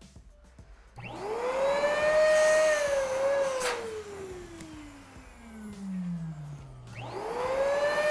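A hand pump inflates a balloon with a long squeaky whine that slowly drops in pitch.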